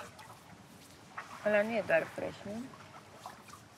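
A young woman talks calmly.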